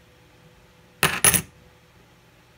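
Metal coins clink together as they are stacked.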